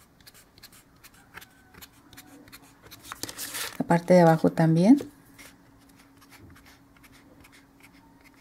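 A marker pen scratches along a ruler.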